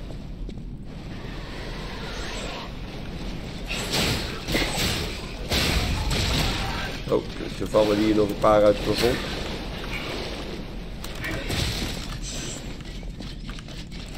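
Footsteps splash through shallow water in an echoing tunnel.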